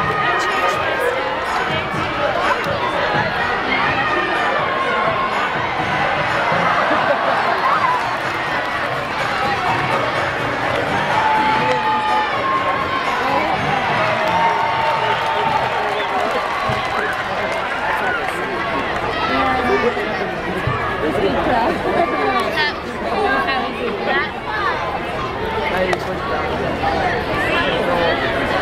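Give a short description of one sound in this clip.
A large crowd cheers and laughs outdoors.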